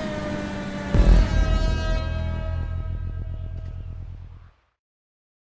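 A heavy thud booms, then a low rumble fades away.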